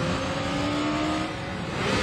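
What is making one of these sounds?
A motorcycle engine roars past on a road.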